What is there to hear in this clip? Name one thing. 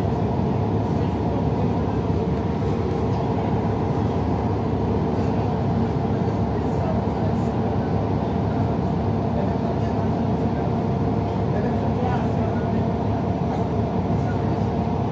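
A bus engine rumbles steadily from inside as the bus drives along.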